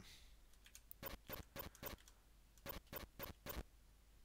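Short electronic game blips repeat in quick bursts.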